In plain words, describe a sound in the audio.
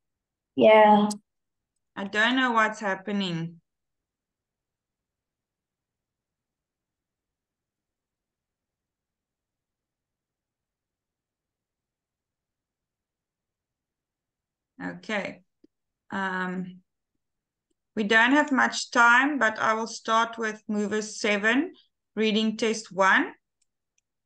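A woman speaks over an online call, in short bursts.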